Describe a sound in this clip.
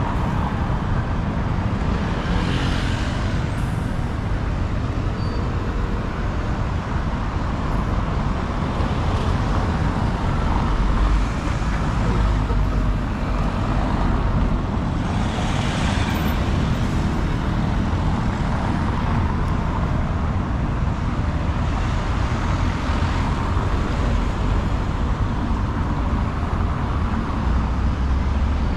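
Steady traffic rumbles on a cobbled road outdoors.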